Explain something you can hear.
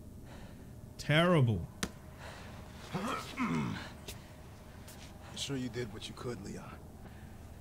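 A man speaks in a strained, pained voice close by.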